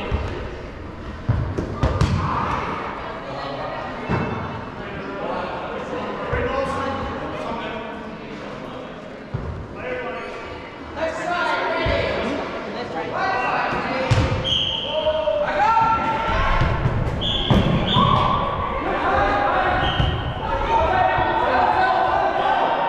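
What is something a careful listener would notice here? Young players shout and call out to each other across a large echoing hall.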